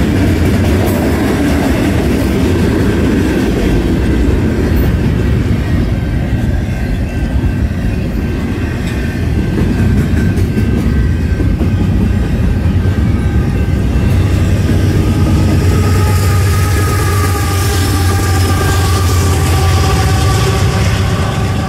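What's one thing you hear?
A long freight train rolls past close by, its wheels clattering and squealing on the rails.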